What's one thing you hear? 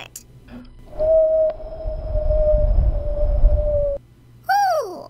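A rocket roars past with a deep rumble.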